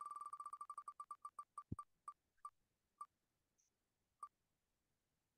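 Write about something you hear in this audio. A spinning prize wheel ticks rapidly, slowing down until it stops.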